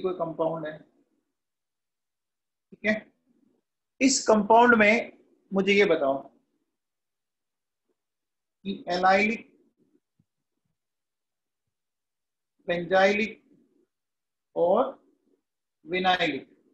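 A man speaks calmly into a microphone, explaining in short phrases with pauses.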